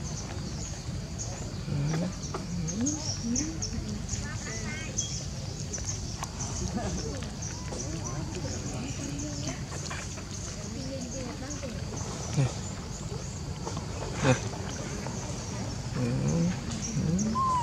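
A young monkey chews and munches on food.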